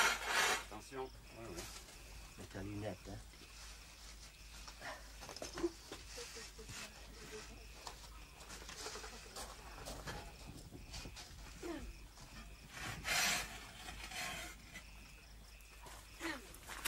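A heavy clay block scrapes and thumps as it is handled.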